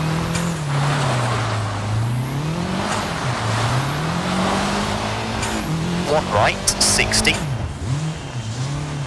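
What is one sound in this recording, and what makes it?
A rally car engine revs up and down as gears shift.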